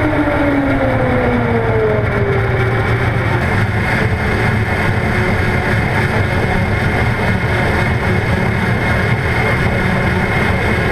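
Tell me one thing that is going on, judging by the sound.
A go-kart engine whirs and hums steadily up close, echoing in a large hall.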